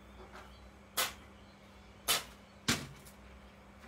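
A plastic paint bottle taps sharply against a board a few times.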